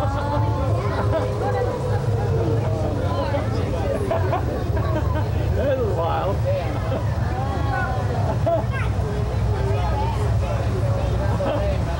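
A crowd of men and women chatters all around, close by.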